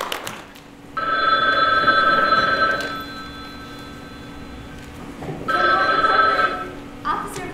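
An old telephone rings loudly in short bursts.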